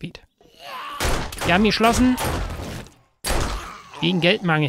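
A pistol fires a few shots.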